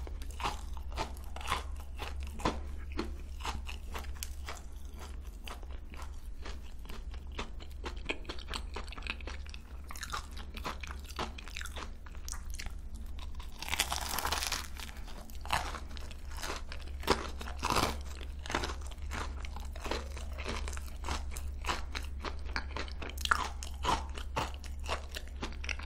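A young woman chews and crunches pastry loudly and close to a microphone.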